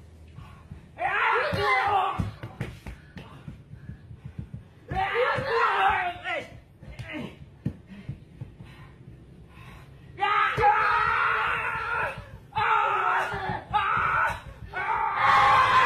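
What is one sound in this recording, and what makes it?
Young men shout with effort nearby, outdoors.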